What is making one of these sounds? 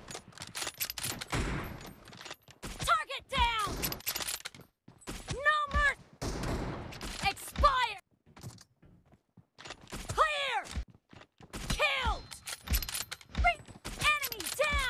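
Rifle shots ring out in quick bursts.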